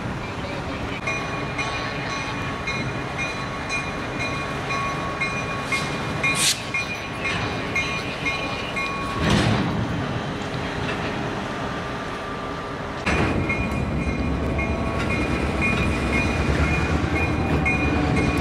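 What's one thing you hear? Train wheels squeal against the rails.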